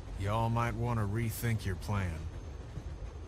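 A man speaks calmly through a two-way radio.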